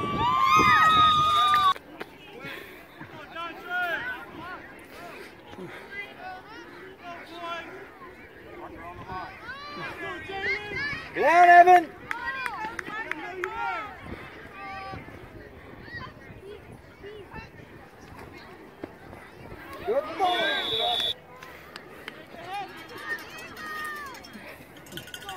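Adult men and women shout and cheer nearby, outdoors.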